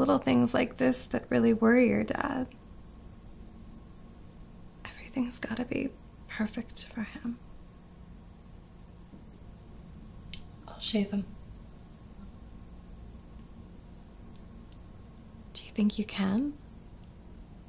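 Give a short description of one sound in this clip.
A middle-aged woman speaks tensely, close by.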